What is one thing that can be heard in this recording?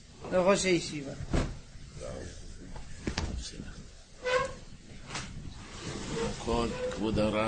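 Men talk and murmur nearby.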